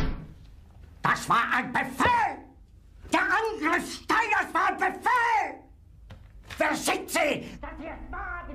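An older man shouts angrily, close by.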